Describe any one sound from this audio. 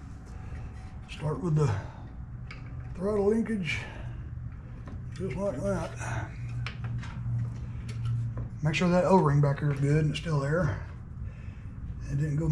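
Small metal parts click and tap under a man's hands.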